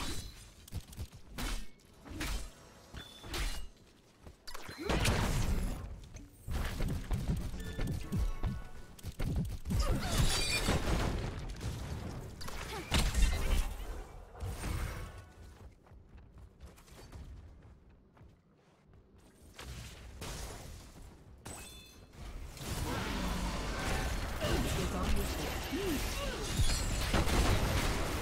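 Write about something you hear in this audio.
Game combat sounds clash and burst in quick succession.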